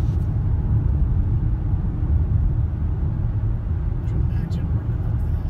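A car drives along a road, with a steady low rumble from inside the car.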